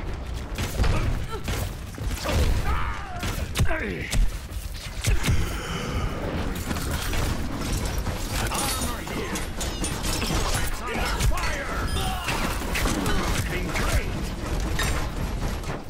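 Gunfire from a video game shooter rattles in rapid bursts.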